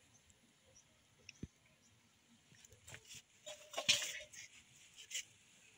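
Mushrooms snap softly as a hand plucks them from soil.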